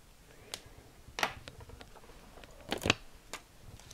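A pen clicks down on a wooden table.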